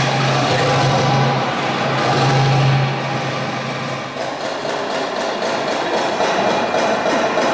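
Music plays loudly through loudspeakers in a large echoing hall.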